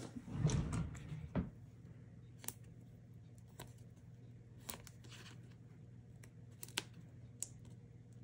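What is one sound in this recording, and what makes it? Paper rustles and taps softly as a card is handled.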